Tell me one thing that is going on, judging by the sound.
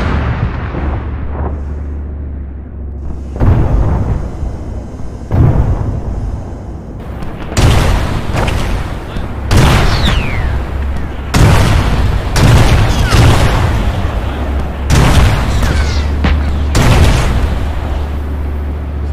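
Loud explosions boom and rumble one after another.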